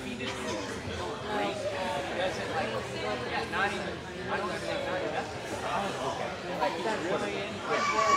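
A woman talks animatedly with another woman up close.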